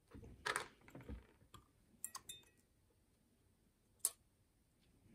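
A metal tool taps and clicks against a lock.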